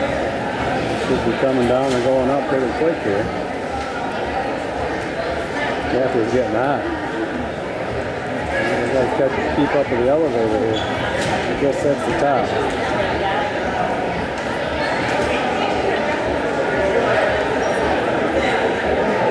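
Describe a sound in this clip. Women talk and laugh close by.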